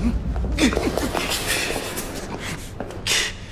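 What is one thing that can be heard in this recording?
Clothing rustles in a brief scuffle.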